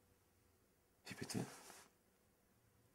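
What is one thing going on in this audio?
A man speaks softly and close by.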